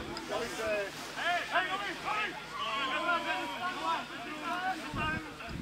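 Footballers shout to each other in the distance across an open field.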